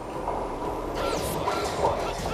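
A heavy punch lands with a sharp smack.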